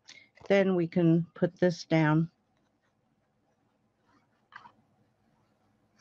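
Paper rustles and slides across a table.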